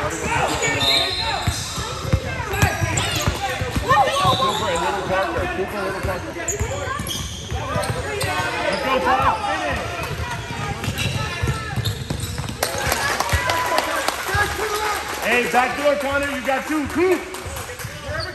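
A crowd of children and adults shout and cheer in an echoing gym.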